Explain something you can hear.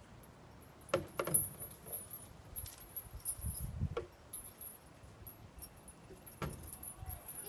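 Hollow plastic steps knock and clunk as a child steps across them.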